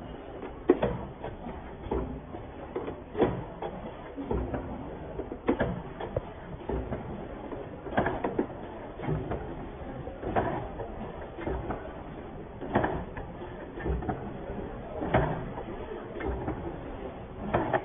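A packaging machine hums and clatters steadily.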